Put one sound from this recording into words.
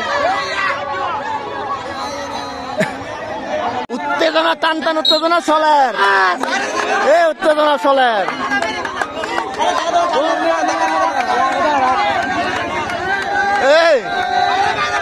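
A large crowd of children and adults shouts and cheers outdoors.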